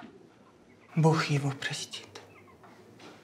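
A man speaks quietly, close by.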